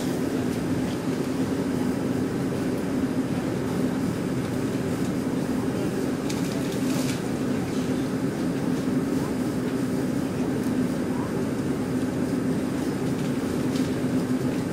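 A train rumbles with a steady low hum, heard from inside a carriage.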